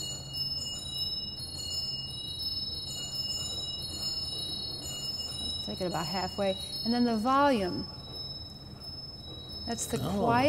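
An organ plays soft, high, sustained notes that change slowly.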